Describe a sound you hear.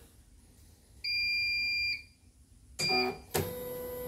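A sewing machine beeps.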